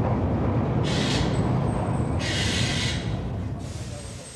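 Train brakes squeal sharply.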